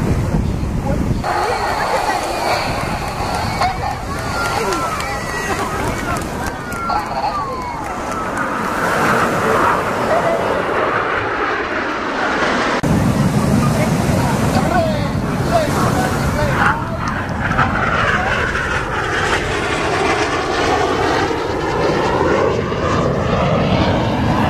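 Jet planes roar overhead and sweep past.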